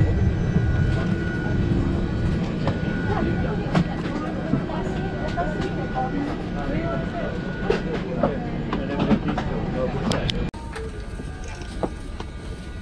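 A steady low rumble of aircraft cabin air fills the space.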